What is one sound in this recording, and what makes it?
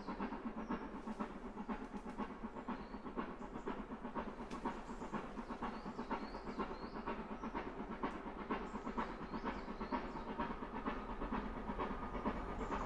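Train wheels rumble and clatter on the rails.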